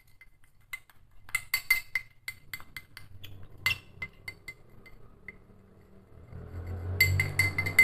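Sugar pours and patters into a ceramic bowl.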